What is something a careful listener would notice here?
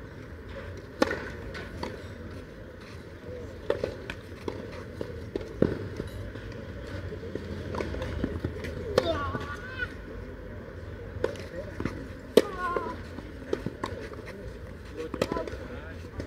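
Tennis balls pop off rackets in a rally.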